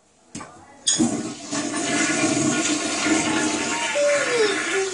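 A toilet flushes with a rushing of water.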